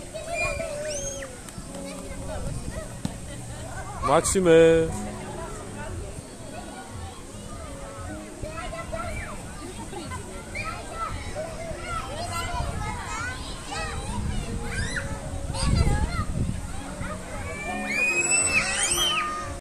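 Young children chatter, squeal and shout excitedly outdoors.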